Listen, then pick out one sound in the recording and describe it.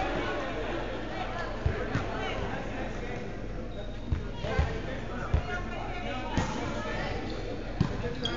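Men and women players call out to each other across an echoing hall.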